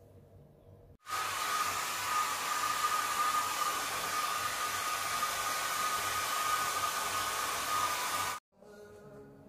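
A hair dryer blows with a loud, steady roar.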